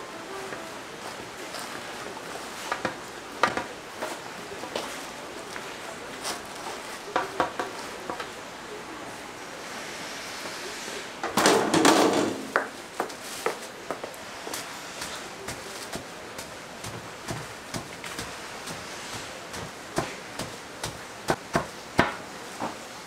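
Dry beans rustle and scrape against a metal bowl as a cloth sack is pushed through them.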